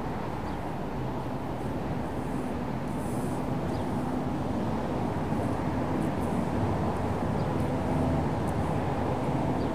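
A brush scrapes softly against a concrete curb.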